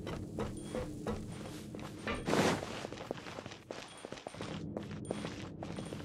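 Footsteps patter quickly across the ground.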